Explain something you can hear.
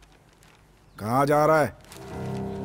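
An elderly man speaks.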